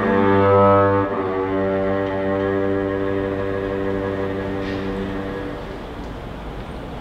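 A cello plays a long sustained low note that fades away.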